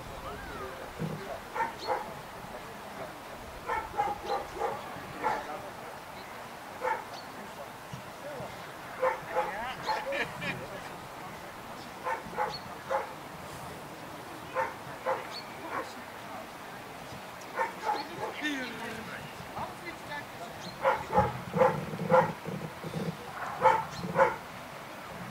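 A man calls out commands outdoors.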